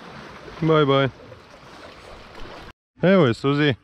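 Small waves lap gently against rocks.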